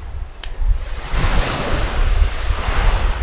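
Leaves rustle in the wind.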